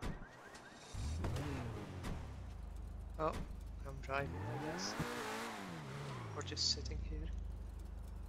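A car engine starts and revs up and down.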